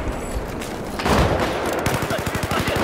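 A rocket launcher fires with a loud whoosh and blast.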